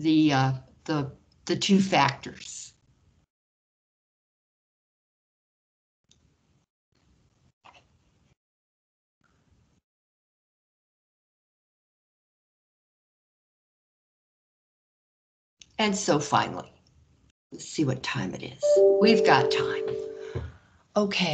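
A woman explains calmly over an online call.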